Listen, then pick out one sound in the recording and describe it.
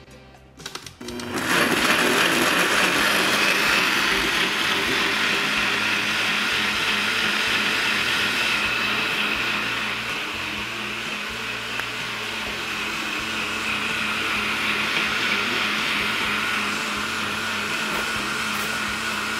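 A blender whirs loudly and steadily.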